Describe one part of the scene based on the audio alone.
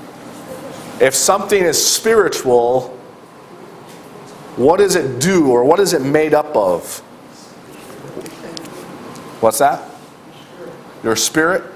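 A middle-aged man speaks with animation in a room with a slight echo, pausing between phrases.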